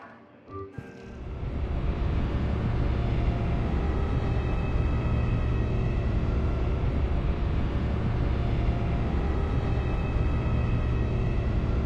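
A low, steady engine rumble drones.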